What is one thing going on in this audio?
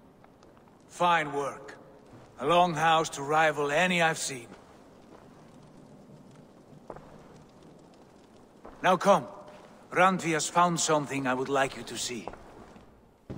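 A man speaks calmly and warmly in a deep voice.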